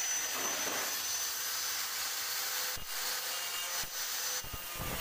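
A power tool cuts through thin sheet metal with a harsh, steady hiss.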